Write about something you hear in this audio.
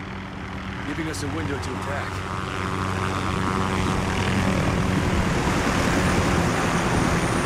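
A helicopter's rotor thumps overhead, growing louder.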